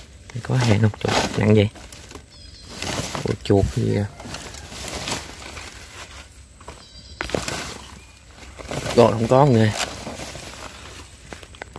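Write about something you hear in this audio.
Dry leaves and twigs rustle as a hand pushes through undergrowth.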